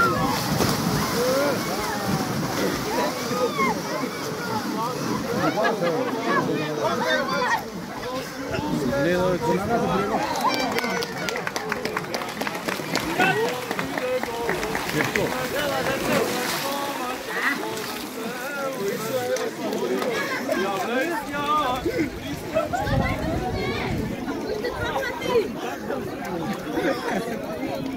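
Water splashes loudly as men swim and thrash in a pool.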